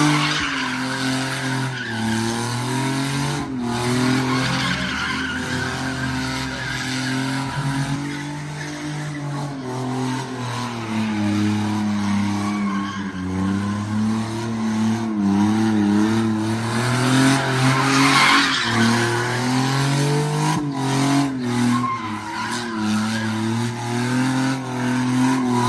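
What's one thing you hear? A car engine revs hard and roars.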